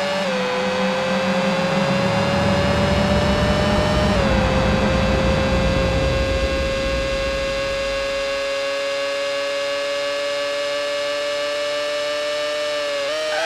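A racing car engine whines at high speed, rising in pitch as it accelerates and dropping briefly at a gear change.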